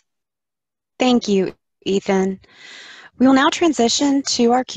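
A woman speaks calmly through a headset microphone over an online call.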